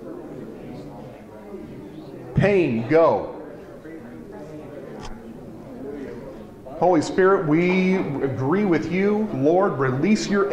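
A crowd of adults chatters quietly in the background.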